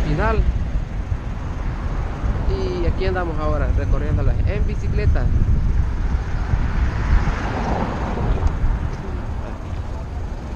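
Wind rumbles steadily against a moving bicycle rider outdoors.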